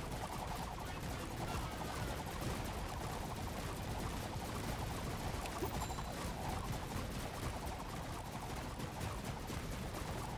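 Rapid gunshots crackle without a break in a video game.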